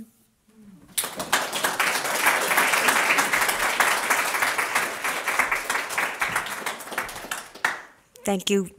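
An audience applauds in a room.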